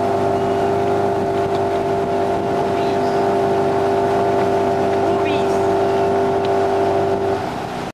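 Water splashes and rushes against the hull of a moving boat.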